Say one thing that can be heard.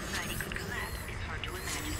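Sparks crackle and fizz.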